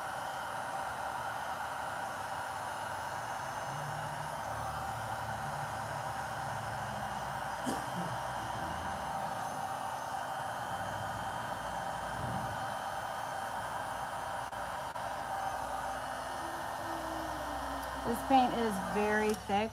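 A heat gun blows with a steady whir.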